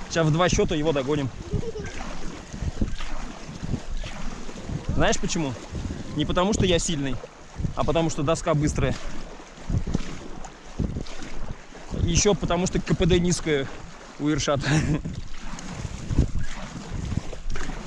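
A stand-up paddle dips and pulls through calm lake water.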